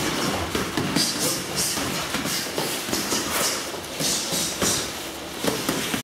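Bare feet shuffle and squeak on a mat.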